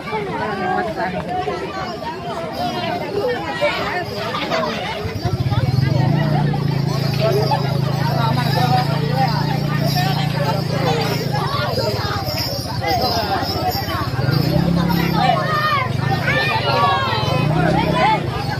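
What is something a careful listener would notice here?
A large crowd of children and adults chatters and calls out nearby outdoors.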